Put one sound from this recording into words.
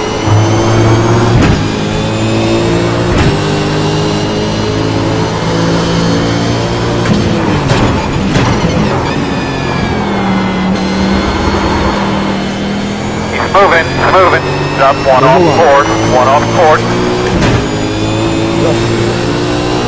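A racing car's engine drones loudly and changes pitch as it shifts gears.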